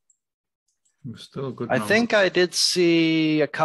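A man speaks with animation over an online call.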